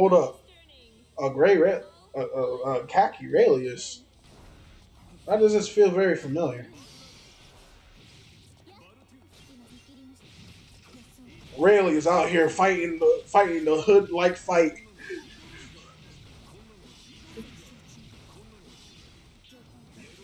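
Video game fighters clash with punchy hit sounds and bursts of energy effects.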